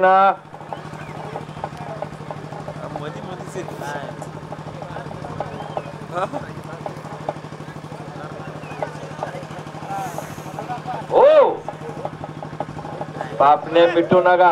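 A crowd of men chatters steadily in the background.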